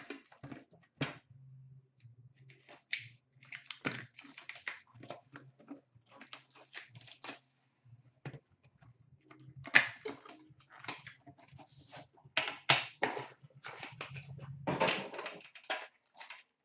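A cardboard box is opened and knocked down with sharp taps.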